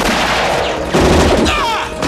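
A pistol fires loud single shots.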